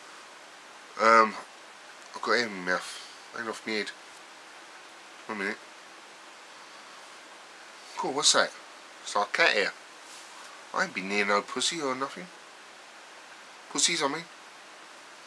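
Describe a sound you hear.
A middle-aged man speaks close up in short, emphatic bursts.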